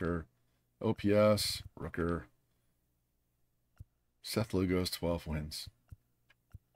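A man talks calmly and close to a microphone.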